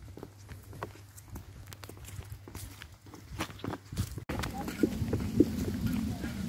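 Footsteps crunch softly on a path outdoors.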